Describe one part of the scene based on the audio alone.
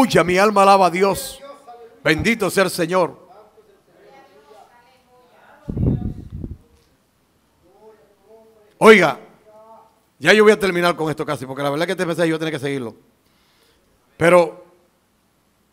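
A man speaks with animation through a headset microphone in an echoing hall.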